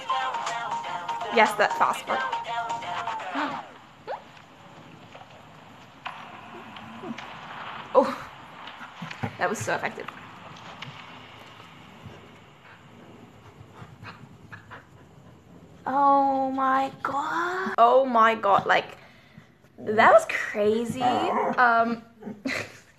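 A young woman talks excitedly and close up through a webcam microphone.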